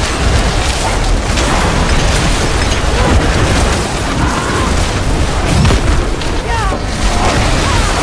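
Magic spells crackle and boom in a fierce battle.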